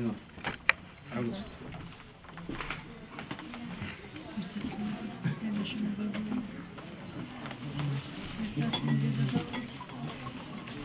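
Several men and women murmur and talk.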